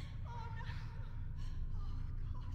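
A young woman cries out in distress.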